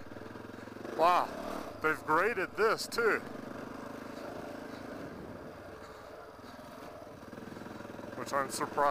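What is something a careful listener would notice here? A motorcycle engine revs up and down sharply in bursts.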